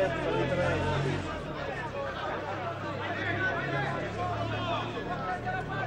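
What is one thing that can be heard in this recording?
Spectators in an outdoor stand shout and chatter from a distance.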